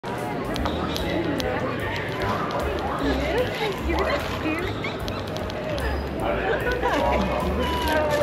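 Young women laugh and talk excitedly close by.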